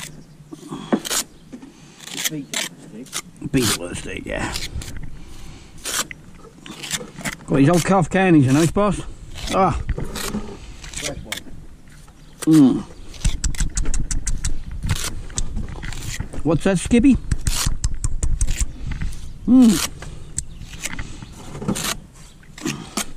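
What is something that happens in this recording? A metal trowel scrapes and taps mortar against brick.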